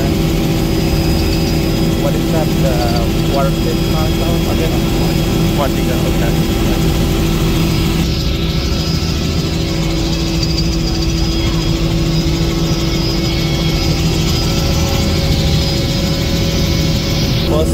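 A helicopter engine and rotor drone loudly and steadily.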